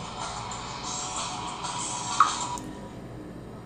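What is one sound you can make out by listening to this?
Game music plays from a small phone speaker.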